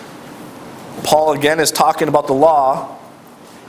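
A middle-aged man speaks steadily in a room with a slight echo.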